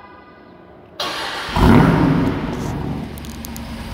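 An engine cranks and starts with a loud roar.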